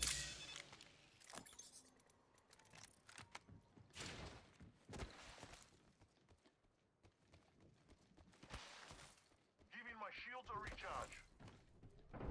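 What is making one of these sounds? Quick footsteps tap on a hard floor.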